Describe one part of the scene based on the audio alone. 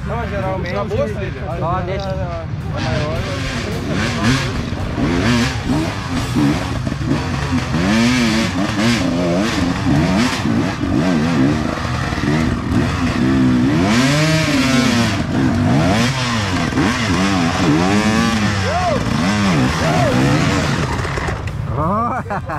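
A dirt bike engine revs and whines as it climbs closer.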